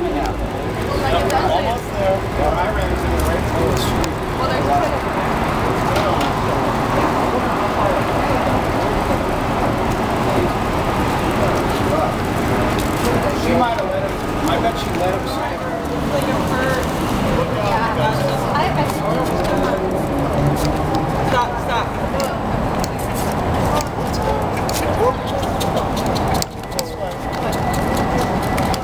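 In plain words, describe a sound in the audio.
Adults talk and chatter nearby, outdoors.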